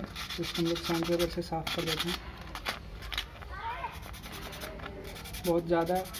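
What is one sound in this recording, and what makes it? Sandpaper rustles and scrapes between fingers.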